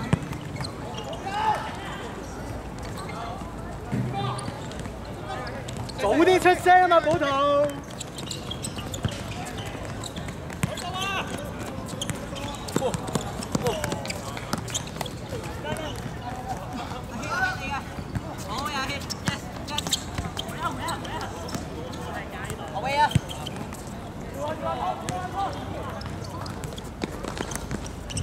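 Trainers squeak and patter on a hard court.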